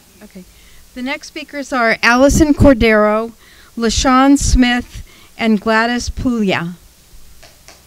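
A woman speaks into a microphone, her voice carried through loudspeakers in a large hall.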